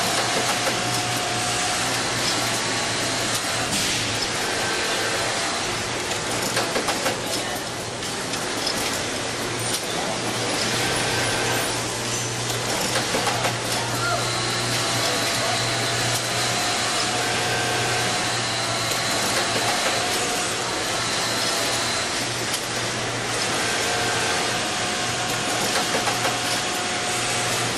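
An industrial sewing machine hums and stitches steadily.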